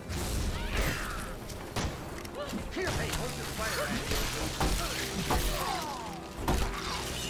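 Heavy blows thud as a club strikes a creature.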